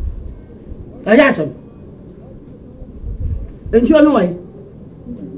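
A young woman calls out a question from a short distance.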